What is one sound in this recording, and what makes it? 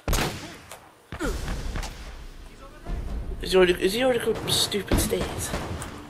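A rifle fires sharp, loud shots.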